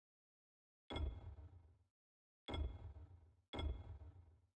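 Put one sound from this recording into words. A short interface click sounds a few times.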